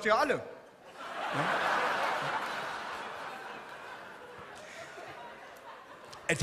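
A large audience laughs and cheers.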